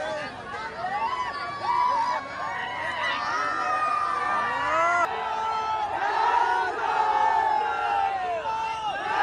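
A large outdoor crowd cheers and whistles loudly.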